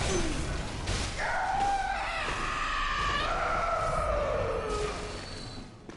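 A monstrous creature lets out a loud, wailing screech.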